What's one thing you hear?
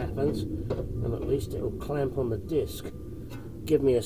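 Metal parts clink and knock as a brake caliper is handled by hand.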